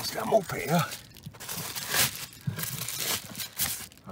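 Bubble wrap crinkles and rustles under a hand.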